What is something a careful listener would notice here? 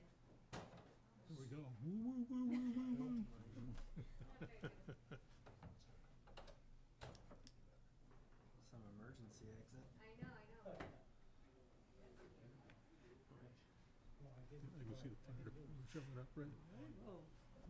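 Men talk quietly in a room, heard through a microphone.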